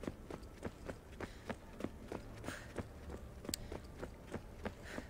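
Footsteps run quickly over stone floor in an echoing space.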